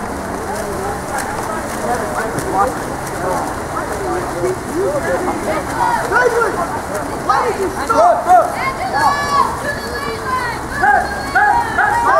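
Swimmers splash and churn the water.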